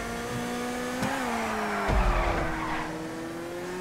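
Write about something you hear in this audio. Tyres squeal as a car drifts.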